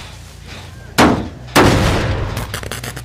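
A metal engine clanks and bangs loudly as it is struck.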